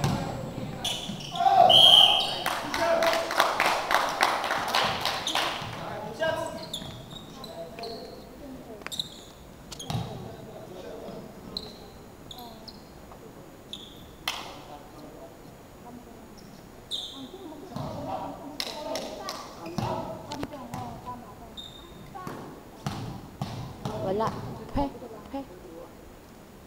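Young men shout and call out across the echoing hall.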